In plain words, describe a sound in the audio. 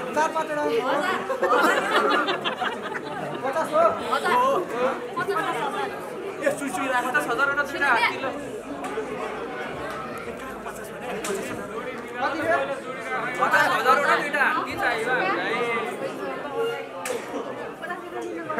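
A crowd of young women and men chatter and laugh excitedly nearby.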